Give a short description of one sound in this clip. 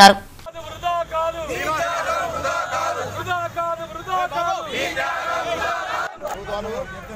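A group of men chant slogans together outdoors.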